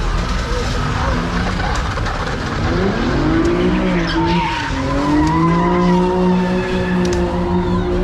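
A crowd of people talk and shout outdoors.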